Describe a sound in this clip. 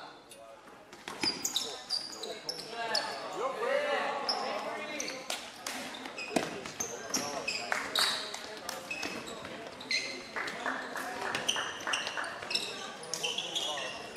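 Sneakers squeak sharply on a hall floor, again and again.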